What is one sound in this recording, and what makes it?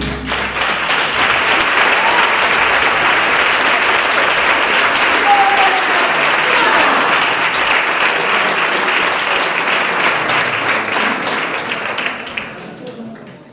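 Guitars strum along.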